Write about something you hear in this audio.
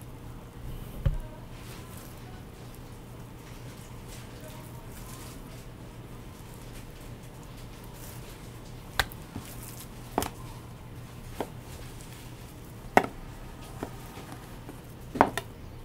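A knife knocks against a cutting board.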